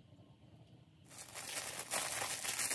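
A plastic bag crinkles loudly.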